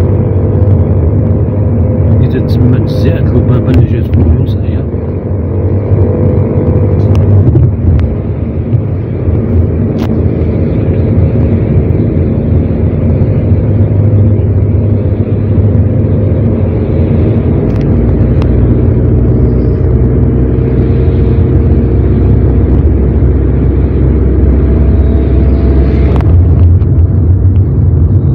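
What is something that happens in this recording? A car engine hums steadily from inside the car as it drives.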